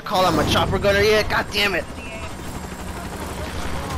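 A helicopter engine hums steadily.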